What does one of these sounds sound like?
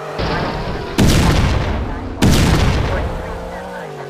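A loud crash bursts out, twice in quick succession.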